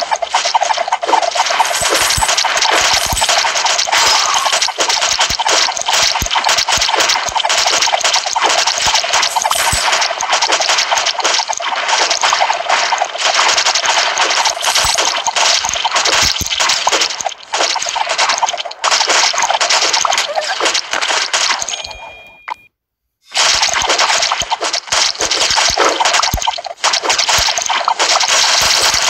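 Rapid electronic blaster shots fire continuously.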